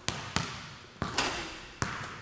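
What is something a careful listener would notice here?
A basketball clangs off a hoop's rim.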